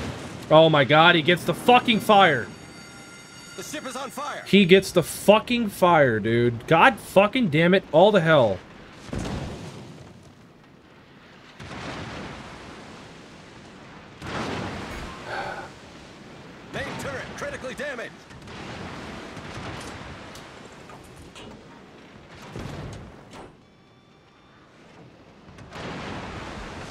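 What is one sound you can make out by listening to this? Shells explode and splash into the water.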